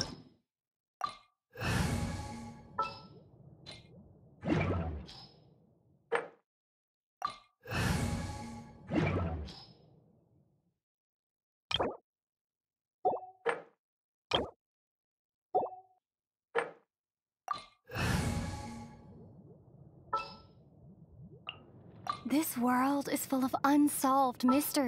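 Soft game menu chimes and clicks sound one after another.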